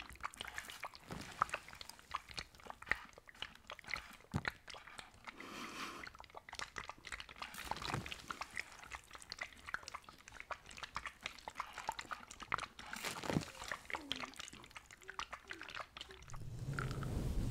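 Young women whisper softly close to a microphone.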